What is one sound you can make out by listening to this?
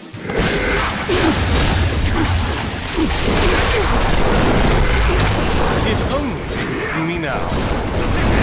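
Monsters shriek and groan as they die.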